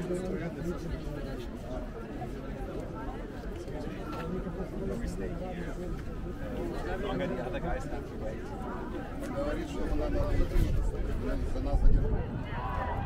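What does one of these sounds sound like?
Men talk in a crowd close by.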